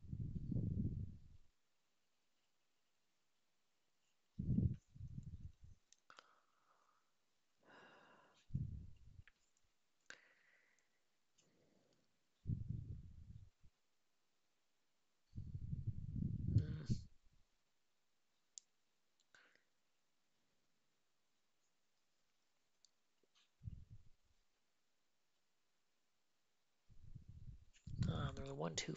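A young man speaks calmly and thoughtfully into a close microphone, in short bursts with pauses.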